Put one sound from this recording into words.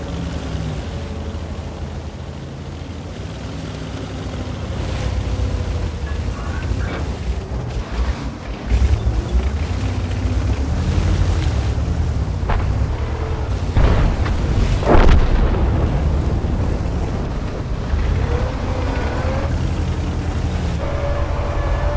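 A tank engine rumbles low and steadily as the tank drives.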